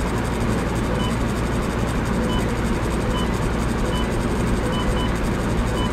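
Soft electronic blips sound as menu selections change.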